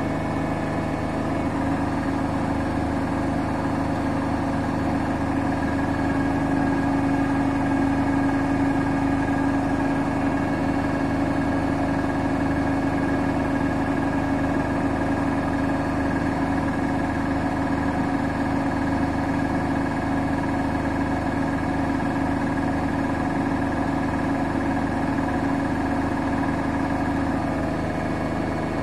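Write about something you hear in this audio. A washing machine spins its drum fast with a steady whirring hum.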